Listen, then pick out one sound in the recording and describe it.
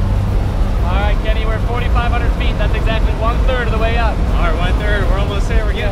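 A young man talks with animation close by, over the engine noise.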